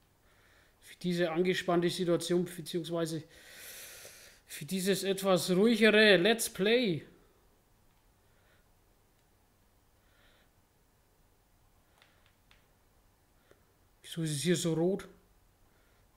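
A man talks with animation into a microphone, in short bursts.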